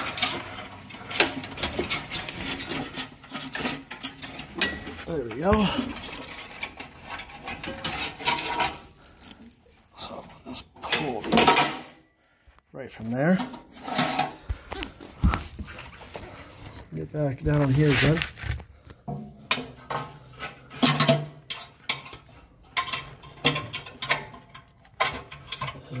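Metal parts knock and rattle as they are handled.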